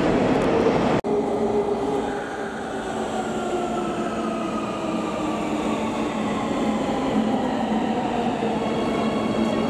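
A metro train rumbles into an echoing station with a steady roar and a whining motor that slowly falls in pitch.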